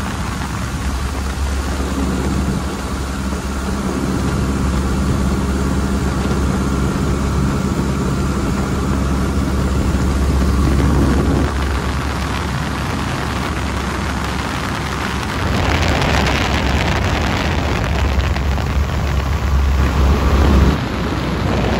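A small plane's engine drones steadily close by.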